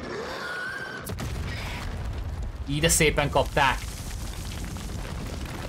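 Fire roars with a low rumble.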